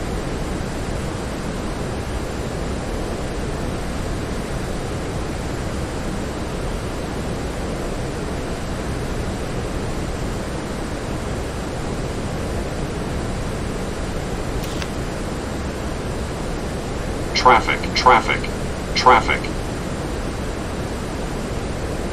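Jet engines drone steadily with a low rushing of air.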